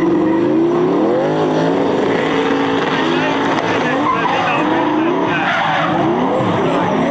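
Tyres screech on a wet track.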